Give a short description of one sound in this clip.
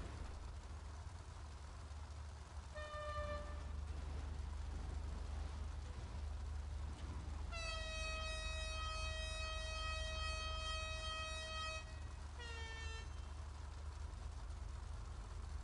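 Race car engines rumble steadily at idle.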